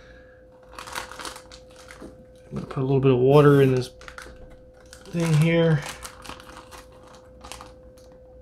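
A plastic bag crinkles and rustles as it is handled.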